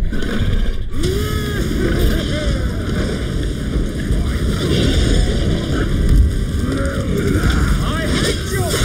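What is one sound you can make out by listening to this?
A large beast grunts and growls.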